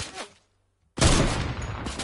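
A sniper rifle fires a sharp, loud shot.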